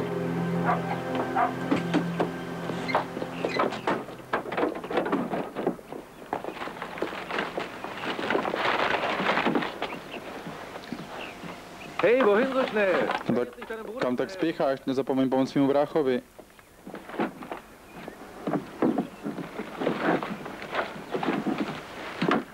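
Bags and objects thump as they are loaded into a car.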